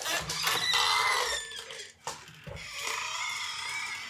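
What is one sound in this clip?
A door latch clicks and the door swings open.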